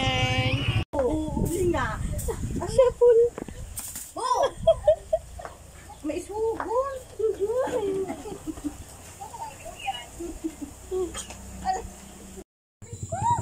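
A young boy shouts playfully.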